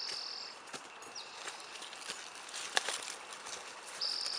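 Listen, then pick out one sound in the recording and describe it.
Leafy plants rustle as people push through them.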